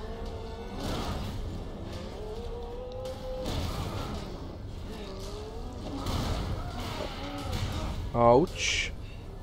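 Heavy bodies thud and slam against metal.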